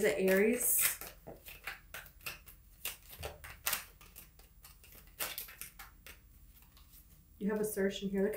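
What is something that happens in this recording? Small objects click and rustle in a person's hands.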